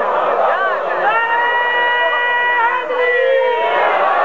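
A man chants in a long, drawn-out melodic voice through a microphone.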